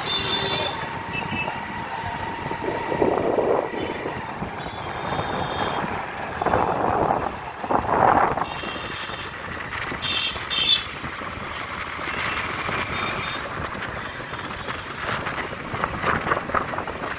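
Wind rushes past, buffeting loudly at times.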